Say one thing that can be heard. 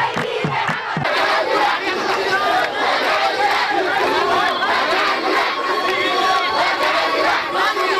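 A crowd of marchers chants outdoors.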